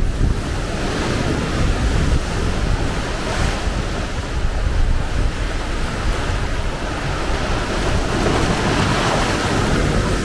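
Waves crash and splash against rocks close by.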